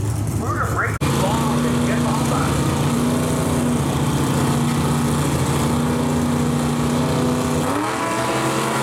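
Powerful car engines idle with a deep, loud rumble.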